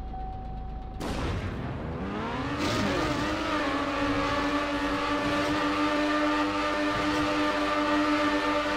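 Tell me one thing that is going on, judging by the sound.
A racing car engine revs up and roars at high speed.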